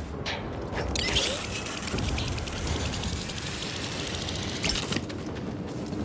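A metal hook whirs and rattles as it slides fast along a rope.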